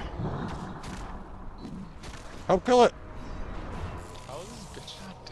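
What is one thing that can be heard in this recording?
Fiery spell effects crackle and roar.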